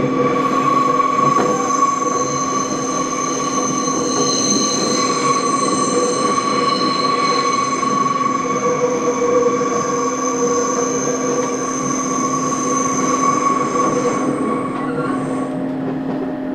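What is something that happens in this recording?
A train's motor whines at a steady pitch.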